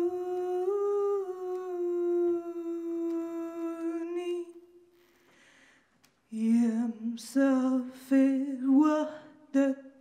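A woman sings into a microphone, holding long, sustained notes.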